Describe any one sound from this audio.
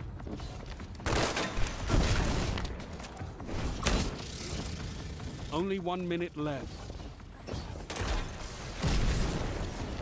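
A rifle fires loud shots in short bursts.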